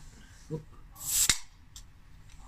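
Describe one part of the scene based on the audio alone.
A bottle cap pops off a bottle.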